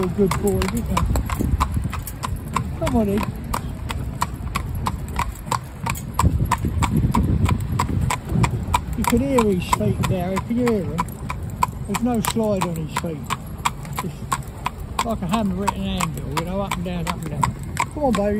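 Cart wheels rumble over the road.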